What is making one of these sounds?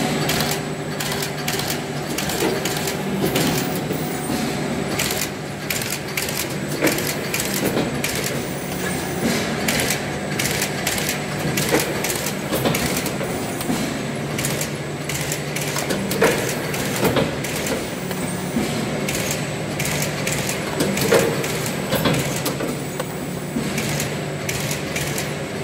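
A machine hums steadily and rattles as it runs.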